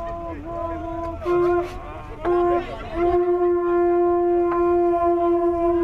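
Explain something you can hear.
Conch shell horns blow loud, steady, low notes outdoors, in bursts that swell and stop.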